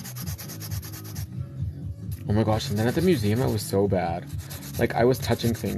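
A nail file rasps back and forth against a fingernail.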